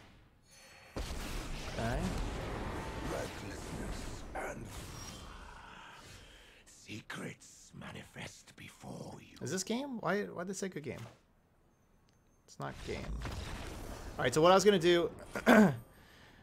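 Game effects whoosh and boom.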